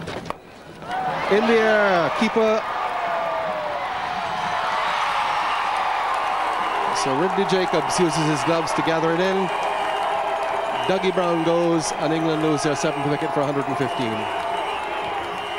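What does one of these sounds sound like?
A large crowd cheers and roars loudly.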